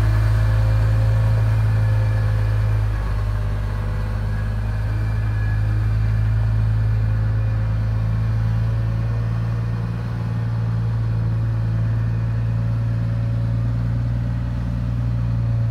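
Large tyres crunch on loose gravel.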